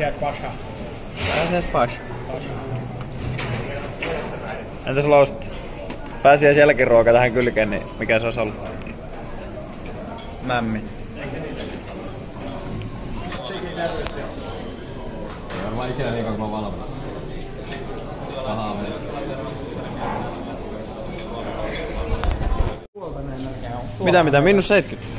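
Voices murmur and chatter in a busy room.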